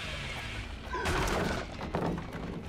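Wooden boards smash and splinter.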